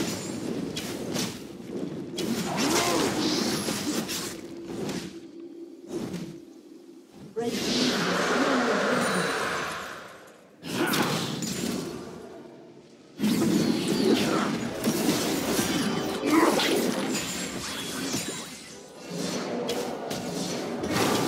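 Magic spells whoosh and crackle as fantasy characters battle.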